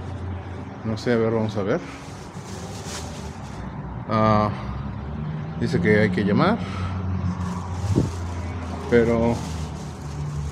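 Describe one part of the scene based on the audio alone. A man talks casually, close by.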